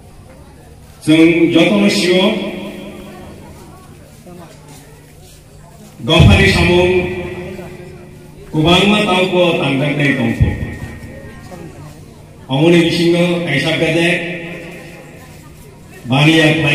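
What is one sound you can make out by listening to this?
A man speaks loudly into a microphone over a loudspeaker, outdoors, in bursts with pauses.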